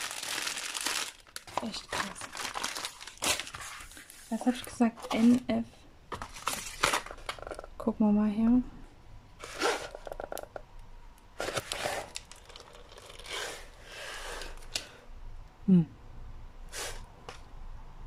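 Stiff plastic sheets rustle and crinkle as they are handled.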